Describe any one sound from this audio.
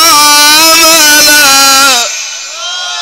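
An elderly man chants loudly and melodiously into a microphone, heard through loudspeakers.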